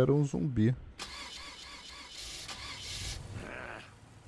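A car engine cranks over and over without starting.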